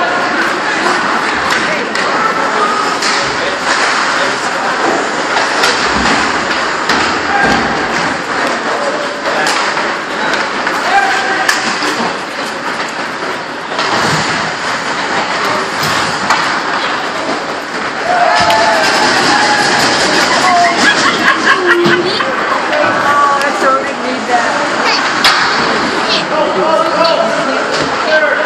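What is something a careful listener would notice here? A crowd of spectators murmurs and chatters in an echoing rink.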